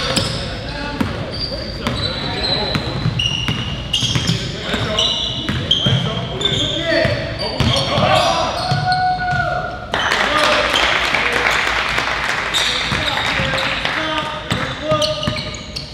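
Players' footsteps thud and patter on the court.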